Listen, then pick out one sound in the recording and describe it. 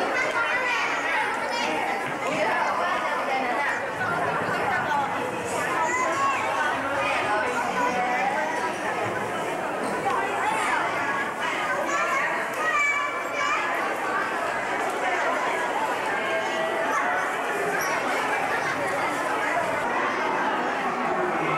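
Many children and adults chatter and call out nearby in an echoing indoor space.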